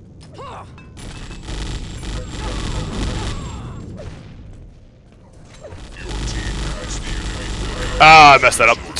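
Guns fire in rapid bursts with loud explosions.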